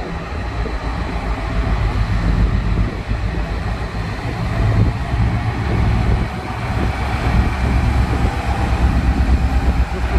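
A diesel locomotive engine rumbles deeply as a train approaches.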